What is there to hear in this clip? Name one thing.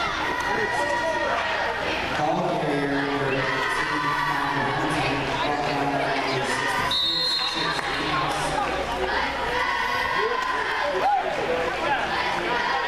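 A crowd chatters and cheers in a large echoing indoor stadium.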